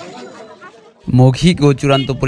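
A young woman speaks loudly and forcefully close by.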